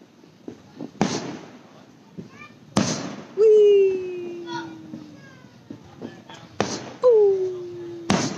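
Fireworks burst with loud booming bangs outdoors.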